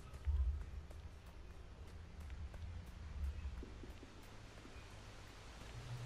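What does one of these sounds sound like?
A waterfall rushes nearby.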